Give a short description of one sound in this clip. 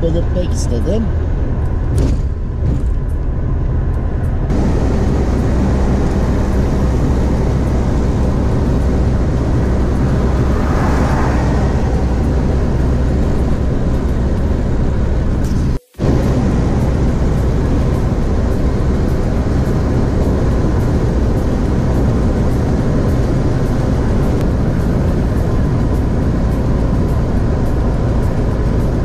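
Tyres roar steadily on a highway from inside a fast-moving car.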